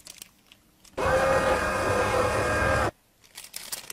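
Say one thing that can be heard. A press machine whirs loudly.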